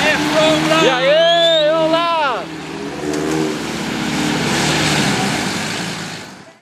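Off-road vehicle engines roar and rev.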